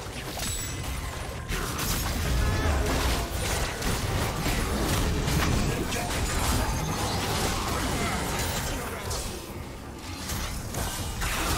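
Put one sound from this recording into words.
Game spell effects crash, whoosh and clash rapidly during a fight.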